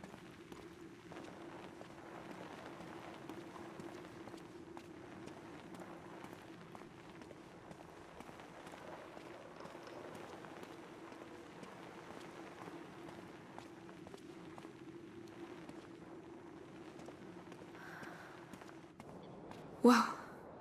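Footsteps scuff softly on stone, echoing faintly.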